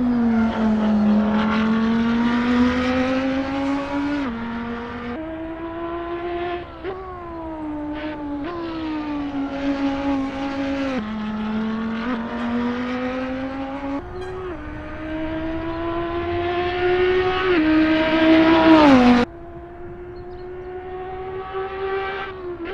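A race car engine roars loudly, its pitch climbing and dropping sharply with each gear change.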